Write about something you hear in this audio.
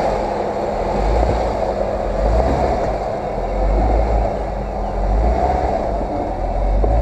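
An off-road vehicle's engine rumbles close by as it crawls over rocks.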